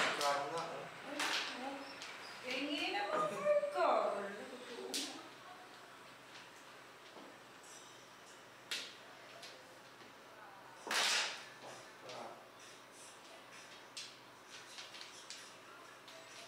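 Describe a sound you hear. Mahjong tiles click and clack against each other on a table.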